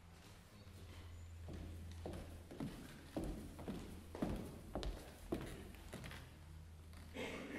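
High heels click on a wooden stage as a woman walks in.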